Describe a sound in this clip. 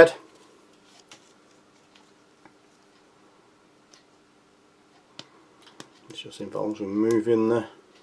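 A small plastic cap clicks as it is twisted off a tube.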